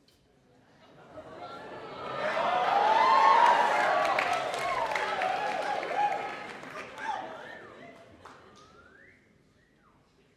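A big band plays a loud, swelling chord in an echoing hall.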